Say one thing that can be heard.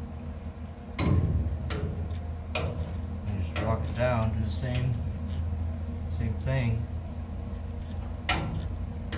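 A metal tool scrapes and taps on sheet metal.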